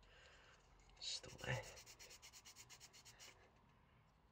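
A metal file rasps back and forth across a small piece of plastic.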